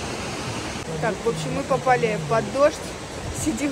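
A young woman talks close by with animation.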